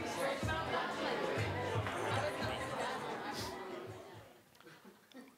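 A crowd of people chatters in a room.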